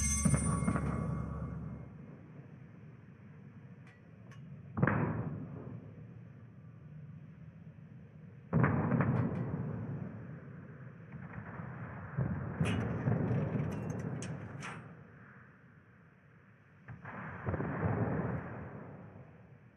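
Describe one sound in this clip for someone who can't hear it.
Water rushes along a moving ship's hull.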